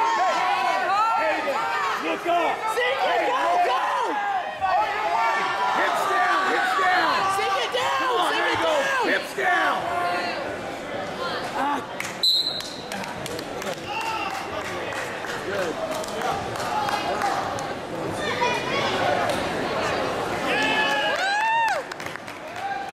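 A crowd of men and women shout and cheer loudly in a large echoing hall.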